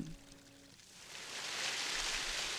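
Water trickles and splashes down a rock face.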